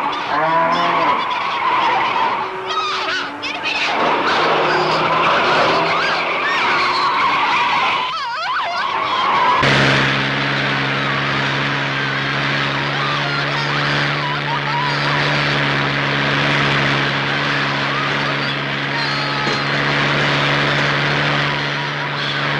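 A car engine roars as a car speeds over rough ground.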